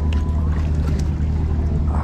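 A hooked fish splashes at the water's surface.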